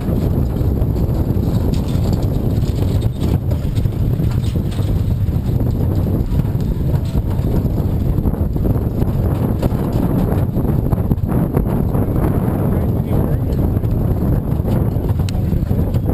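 Wind rumbles loudly across a close microphone.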